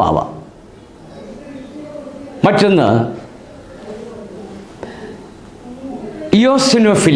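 An elderly man speaks calmly into a nearby microphone, in bursts with pauses.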